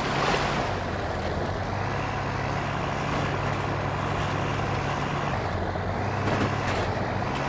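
Tyres crunch over loose dirt and gravel.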